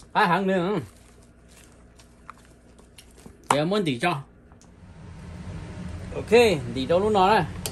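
A spoon and hands stir and squish a moist salad.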